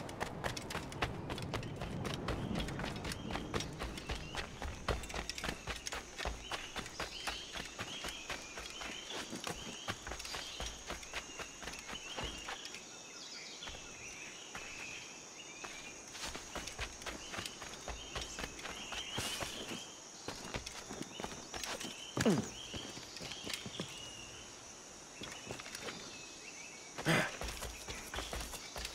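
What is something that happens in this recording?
Footsteps run quickly over earth and stone.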